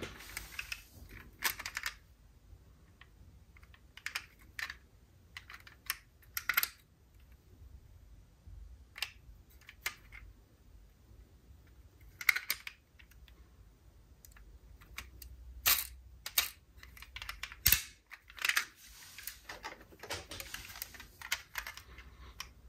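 Hands rustle and handle toy cars against a cardboard box.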